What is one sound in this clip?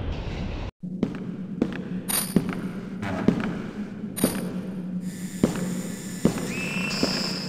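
Footsteps thud slowly on stone.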